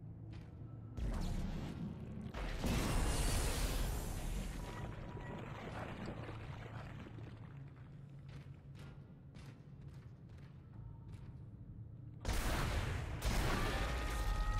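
A weapon fires with a loud, booming blast.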